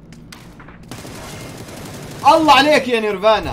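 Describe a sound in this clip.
Rapid rifle gunfire rattles.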